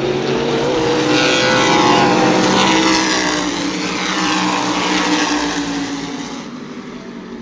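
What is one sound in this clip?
Race cars roar loudly past close by.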